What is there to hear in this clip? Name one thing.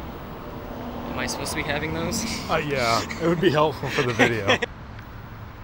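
A young man laughs close by.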